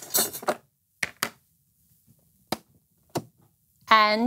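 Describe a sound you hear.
A small device clicks a few times.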